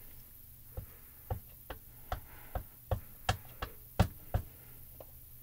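A stamp block taps quickly and repeatedly against an ink pad.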